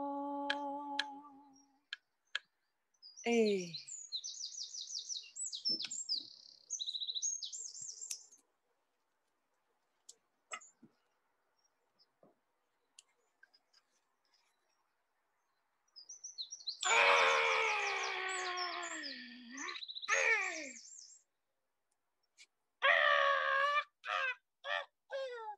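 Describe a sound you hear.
A woman sings and calls out in a high voice, heard through an online call.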